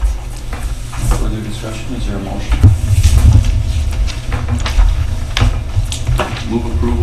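A man speaks calmly at a distance in an echoing room.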